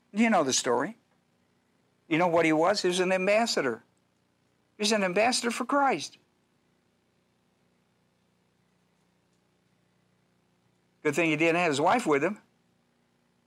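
An older man speaks calmly into a microphone in short phrases with pauses.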